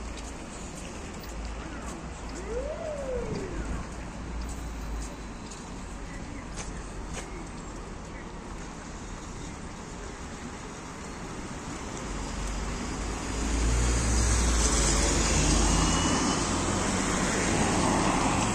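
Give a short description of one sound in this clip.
City traffic hums steadily on a street.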